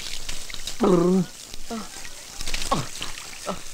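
A man splashes water on his face.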